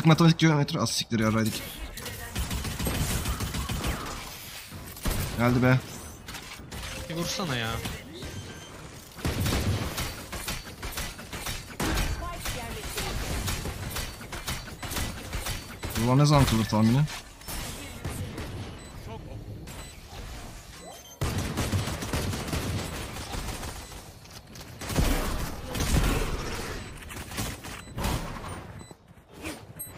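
Gunshots crack in quick bursts from a game.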